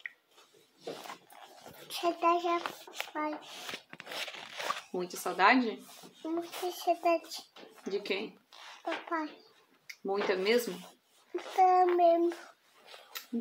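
A toddler babbles and talks close to the microphone.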